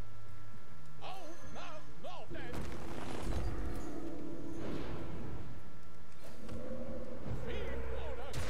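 Magical game effects whoosh and crash as cards are played.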